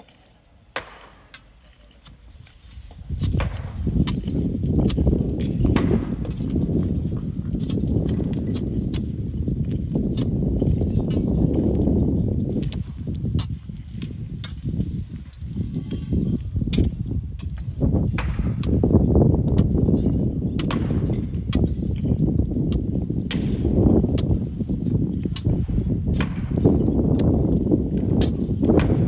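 Loose stones crunch and clatter underfoot.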